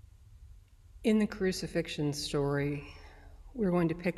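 A middle-aged woman speaks calmly and closely into a microphone.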